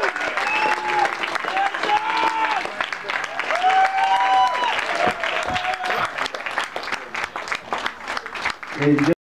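A crowd cheers and whoops loudly nearby.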